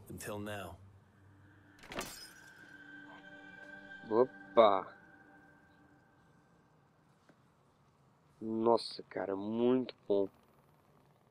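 A young man speaks in a low, calm voice.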